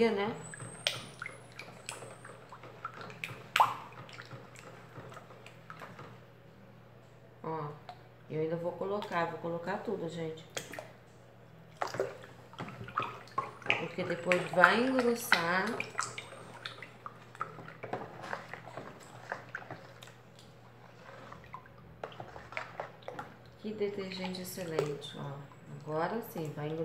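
A spoon stirs and splashes water in a plastic tub.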